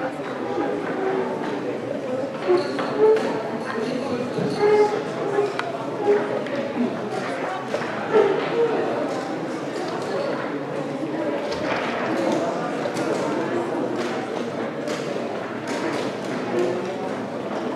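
A crowd murmurs indistinctly in the background.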